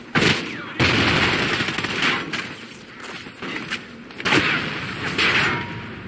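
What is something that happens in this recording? A rifle fires in loud bursts.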